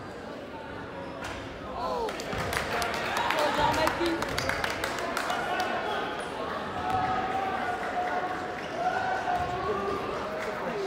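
A crowd talks and calls out across a large echoing gym.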